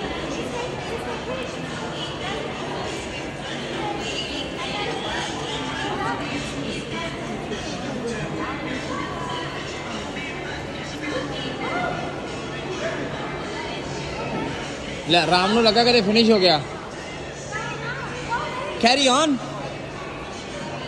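A crowd murmurs in a large echoing indoor hall.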